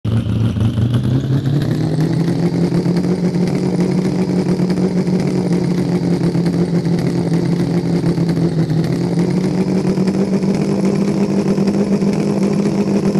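A truck engine drones steadily, its pitch rising at first and then holding.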